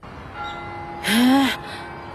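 A boy cries out in surprise.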